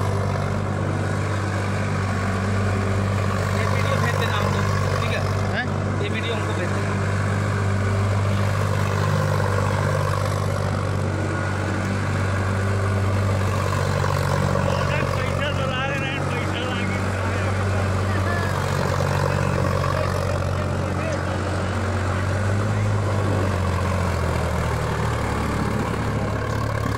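A rotary tiller churns through dry soil.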